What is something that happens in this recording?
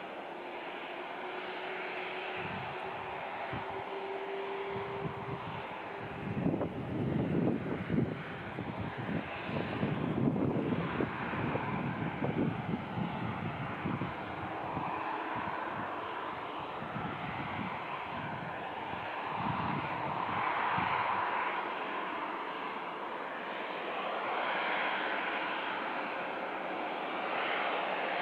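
A jet airliner's engines whine and roar steadily as it taxis slowly, heard from a distance outdoors.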